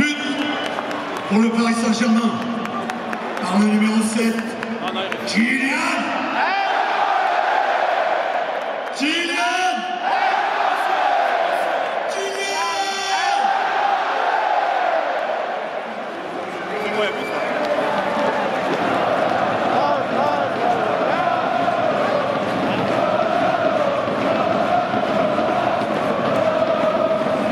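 A large stadium crowd chants and sings.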